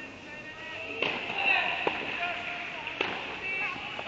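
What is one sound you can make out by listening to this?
A tennis ball bounces on a hard court in a large echoing hall.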